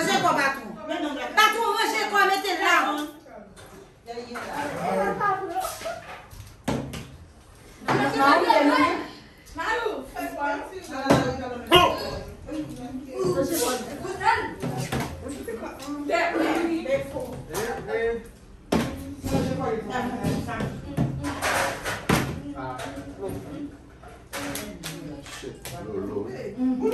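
A group of women and men talk and shout excitedly close by.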